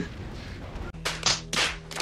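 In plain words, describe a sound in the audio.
A man shouts excitedly.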